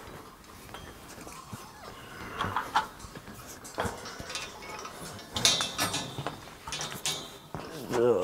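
Metal scaffolding clanks as a man climbs it.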